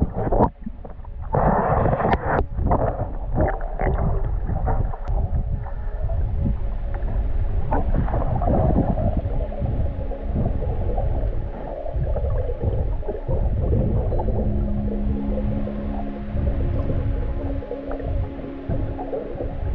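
Muffled underwater rumbling and bubbling goes on steadily.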